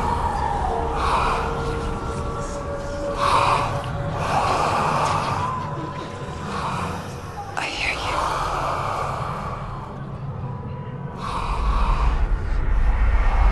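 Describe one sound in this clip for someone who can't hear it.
A young woman speaks softly and intently, close by.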